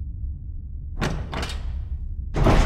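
A metal door latch clicks.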